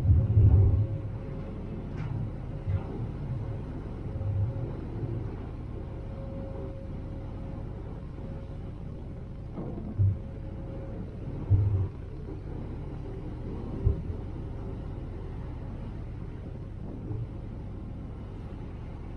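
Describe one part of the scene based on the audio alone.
Wind gusts buffet outdoors.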